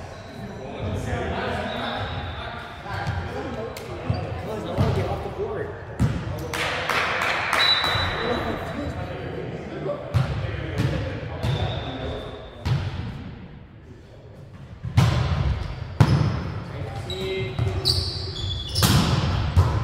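Young men call out and talk in a large echoing hall.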